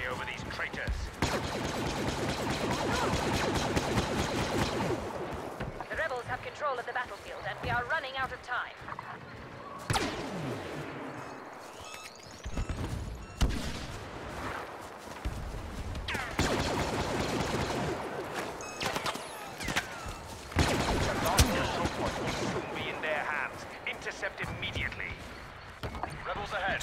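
Blaster shots fire in sharp bursts.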